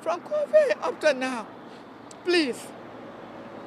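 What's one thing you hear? An elderly woman speaks with feeling into microphones outdoors.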